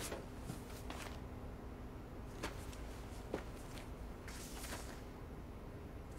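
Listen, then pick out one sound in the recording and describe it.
Paper pages rustle as a book is flipped through.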